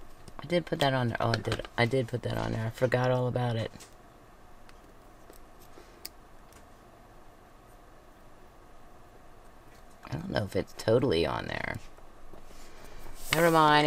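Paper rustles softly as strips are pressed down by hand.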